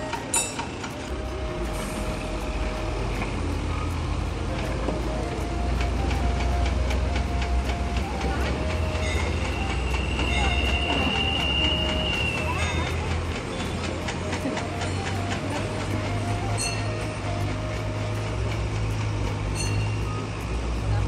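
Engines of trucks and cars rumble along a road below.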